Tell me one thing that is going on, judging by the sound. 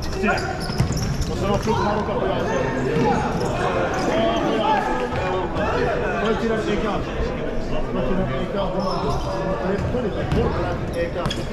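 Men in a crowd chat close by, in a large echoing hall.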